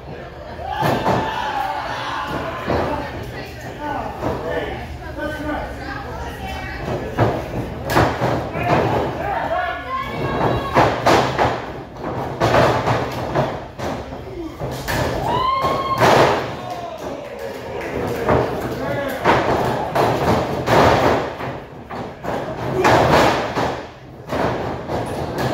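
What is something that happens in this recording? Wrestlers slam onto a ring mat with loud thuds in an echoing hall.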